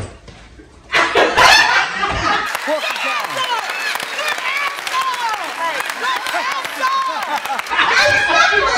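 A studio audience cheers and claps loudly.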